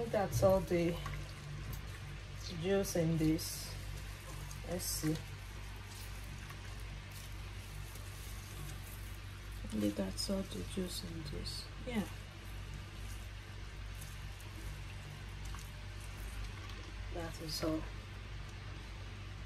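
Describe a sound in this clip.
Liquid drips and trickles into a bowl.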